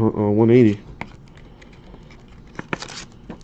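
Plastic card sleeves rustle and click.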